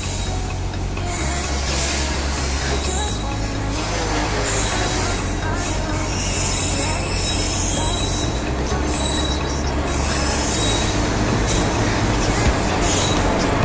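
Train wheels clatter on the rails, growing louder.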